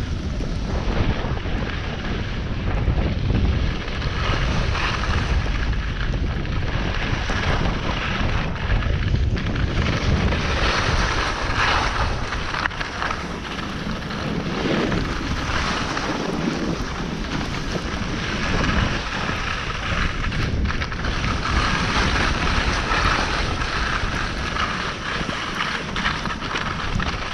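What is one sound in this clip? Wind rushes loudly past, close by.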